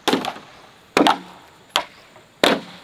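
A machete chops into bamboo with sharp knocks.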